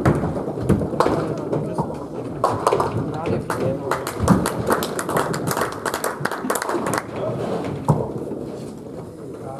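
Pins clatter as balls strike them.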